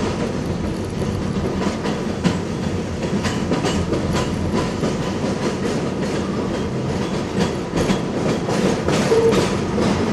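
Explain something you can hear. Tyres rumble on the road from inside a moving car.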